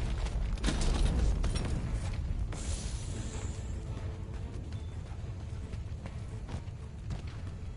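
Armoured footsteps crunch over rocky ground.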